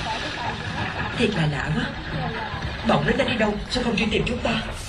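A young cartoon child speaks softly.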